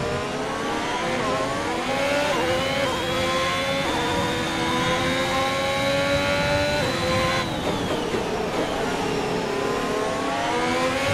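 A racing car engine screams at high revs, rising through the gears and dropping as it slows for a corner.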